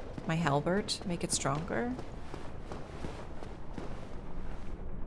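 Armoured footsteps clank on stone as a figure runs.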